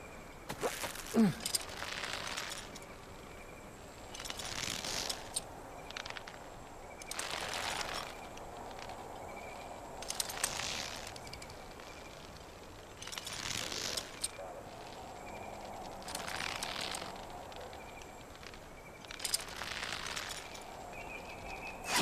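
A thick rope creaks and rustles as hands pull up along it, hand over hand.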